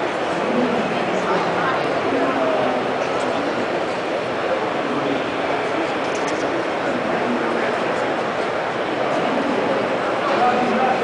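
An audience murmurs and chatters.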